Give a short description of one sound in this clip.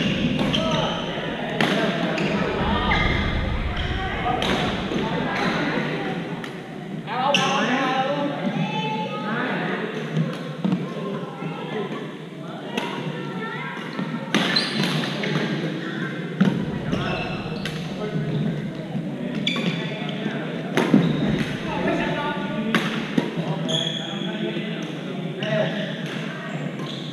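Shuttlecocks are struck with sharp pops of rackets across a large echoing hall.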